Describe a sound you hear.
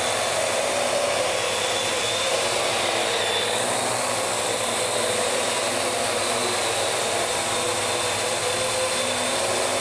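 A small drone's rotors buzz and whine steadily close by.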